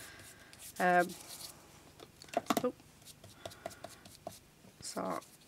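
A brush dabs and scrapes softly on paper.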